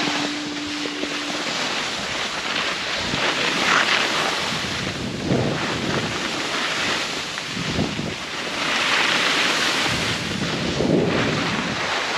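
Skis scrape and hiss over packed snow close by.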